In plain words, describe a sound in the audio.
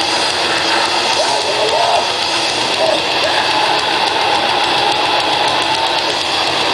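A loud, distorted heavy metal band plays live.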